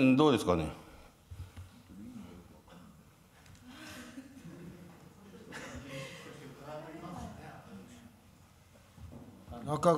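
A man speaks calmly into a microphone in a large, echoing hall.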